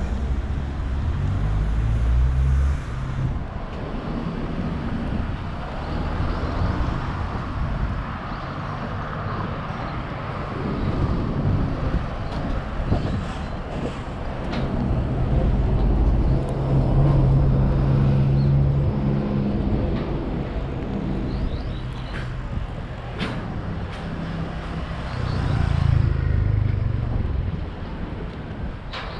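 Traffic hums steadily on a city street.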